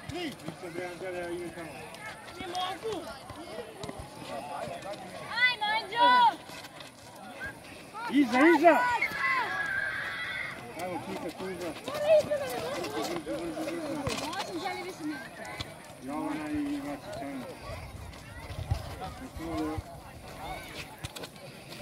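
Young players shout and call out to each other outdoors.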